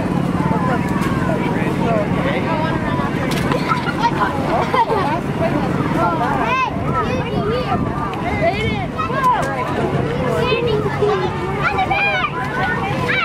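A crowd of people cheer and chatter outdoors along a street.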